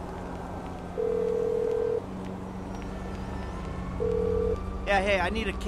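A phone ringing tone beeps twice.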